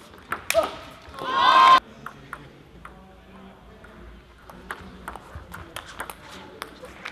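A table tennis ball clicks sharply off bats and the table.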